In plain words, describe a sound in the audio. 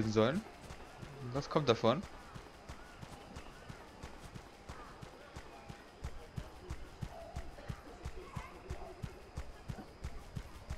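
Light footsteps patter quickly and evenly on hard ground.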